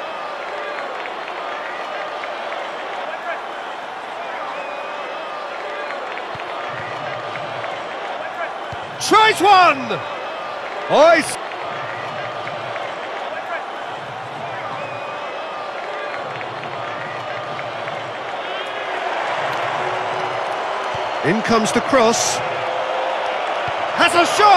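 A stadium crowd roars steadily, swelling louder near the end.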